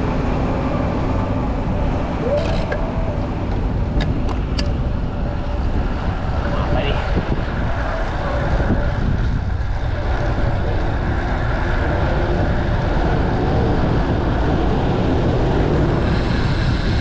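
Wind rushes loudly past a moving bicycle outdoors.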